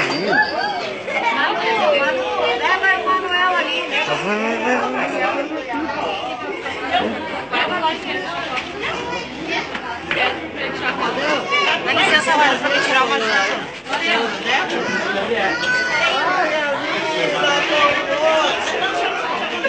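A crowd of men, women and children chatter and sing loudly close by.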